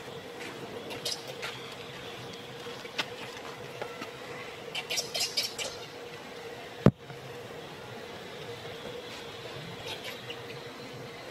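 A baby macaque squeals in high-pitched cries.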